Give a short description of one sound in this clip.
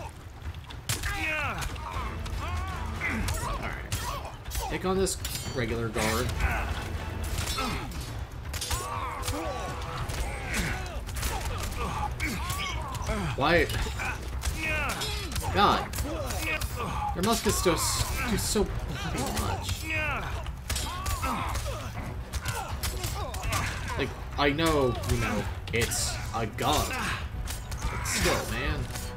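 Swords clash and ring sharply in a fight.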